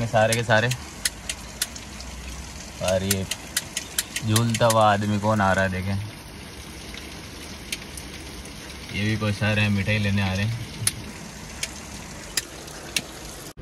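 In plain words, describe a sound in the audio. Heavy rain patters on a car's roof and windows.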